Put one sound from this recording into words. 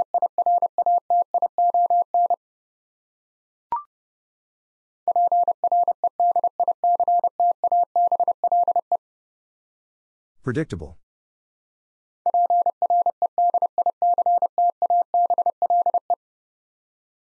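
Morse code beeps in quick, steady bursts of a single tone.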